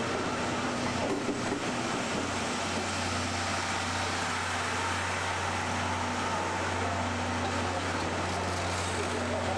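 A locomotive engine hums low and steadily.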